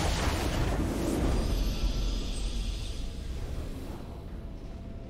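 A triumphant victory fanfare blares and fades out.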